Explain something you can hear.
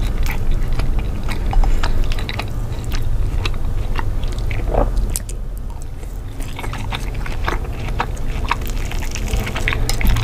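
A fork scrapes and taps on a plate.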